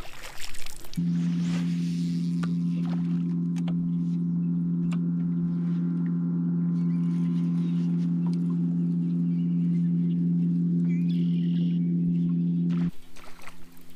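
A trolling motor hums steadily.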